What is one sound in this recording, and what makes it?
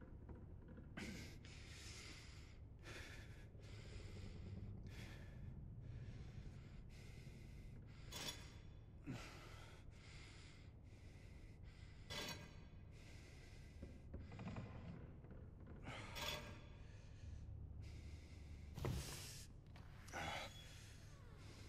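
Heavy metal discs click and scrape as they turn.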